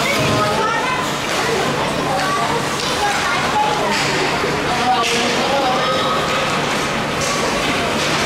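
Skate blades scrape and hiss across ice in a large echoing rink.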